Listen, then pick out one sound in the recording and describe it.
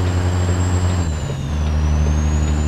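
A truck engine's drone dips briefly during a gear change.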